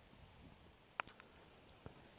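A cricket bat cracks against a ball.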